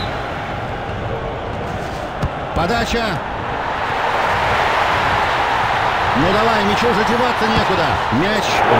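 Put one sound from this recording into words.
A large stadium crowd roars steadily and swells louder.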